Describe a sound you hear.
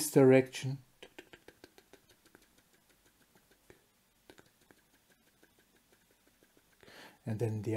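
A pen taps a quick row of dots onto paper.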